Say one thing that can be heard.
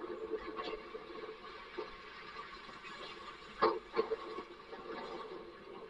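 A snow shovel scrapes across pavement.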